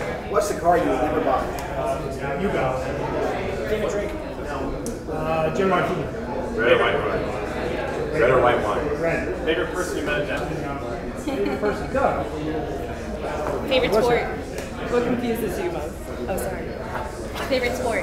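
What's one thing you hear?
Several men and women talk at once nearby.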